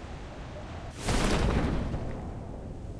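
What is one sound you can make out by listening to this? A parachute snaps open with a loud whoosh.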